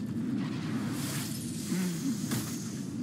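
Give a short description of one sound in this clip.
A magical spell whooshes and sparkles.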